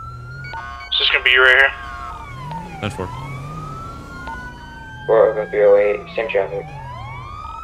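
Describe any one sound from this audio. A police horn blares in short bursts.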